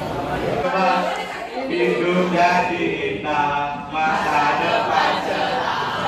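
Teenage boys chant loudly through a microphone.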